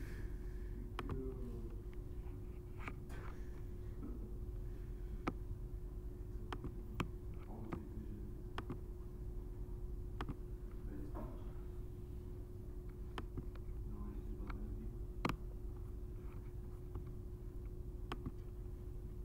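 A computer mouse clicks now and then.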